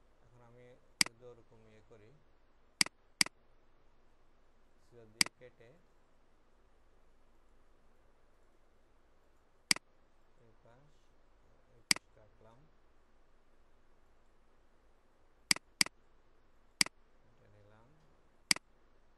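A computer mouse clicks sharply now and then.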